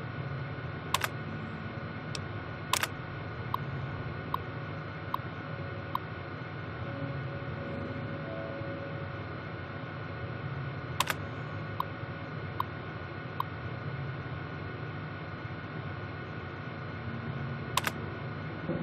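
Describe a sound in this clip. Sharp mechanical clicks sound now and then from an old computer terminal.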